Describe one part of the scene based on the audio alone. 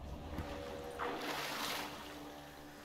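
Water splashes loudly as someone climbs out into a wooden boat.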